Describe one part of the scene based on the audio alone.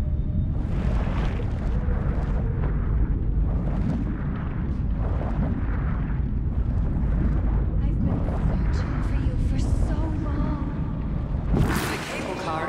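Water rushes and gurgles in a low, muffled underwater rumble.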